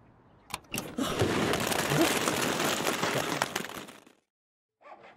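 Apples tumble out and bounce onto the pavement.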